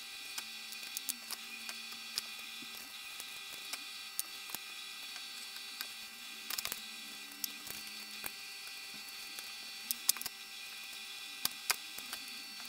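Soft, wet roasted peppers squelch and slap as they are peeled by hand.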